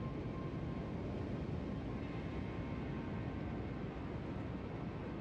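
Water rushes along a ship's hull.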